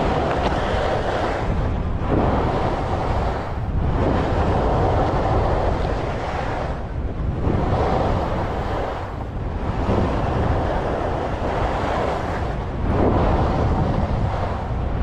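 Wind rushes loudly past close by.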